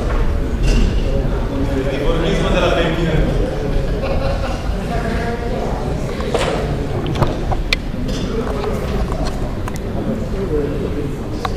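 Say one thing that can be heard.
Several men and women chatter in a large echoing hall.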